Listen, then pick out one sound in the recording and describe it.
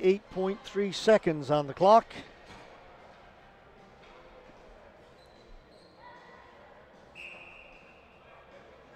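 Shoes squeak on a hard floor in an echoing arena.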